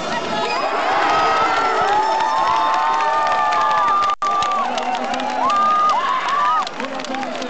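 A large crowd cheers and shouts loudly close by.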